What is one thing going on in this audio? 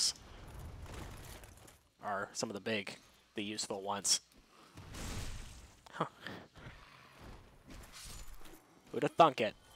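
A sword swings and strikes with metallic clangs.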